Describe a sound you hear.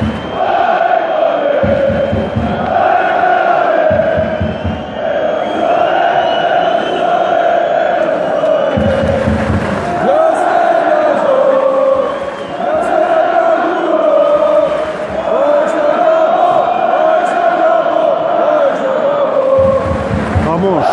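A large stadium crowd chants and sings loudly in unison, outdoors.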